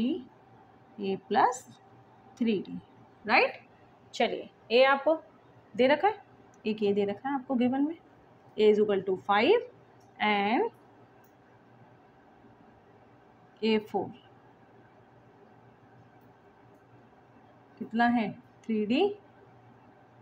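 A woman speaks calmly and clearly, close by, explaining in short phrases with pauses.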